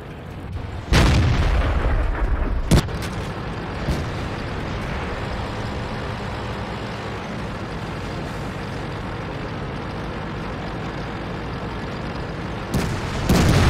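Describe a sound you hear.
A tank cannon fires with a loud, sharp boom.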